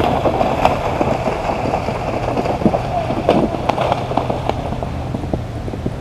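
A horse splashes through water.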